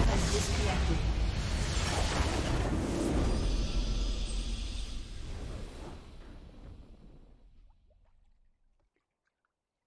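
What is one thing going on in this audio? A triumphant victory fanfare swells and fades away.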